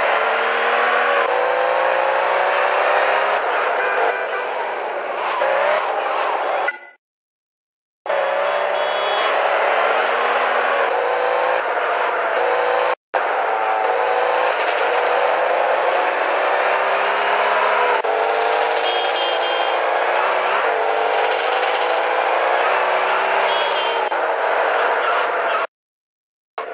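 A car engine revs up hard and drops in pitch with each gear change.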